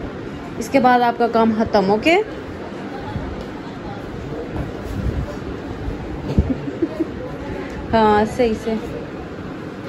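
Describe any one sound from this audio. A young child speaks loudly and excitedly nearby.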